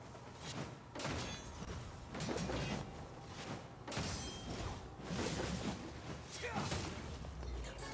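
A burst of sparks crackles with a sharp bang.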